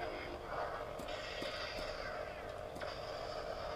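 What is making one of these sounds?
A toy lightsaber clicks and crackles a few times.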